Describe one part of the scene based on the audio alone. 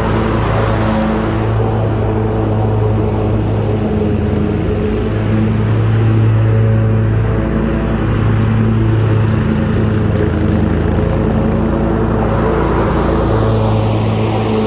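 A lawn mower engine runs loudly with a steady drone.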